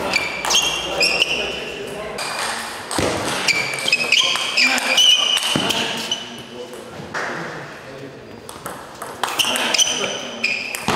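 A table tennis ball clicks back and forth off paddles and the table in a quick rally.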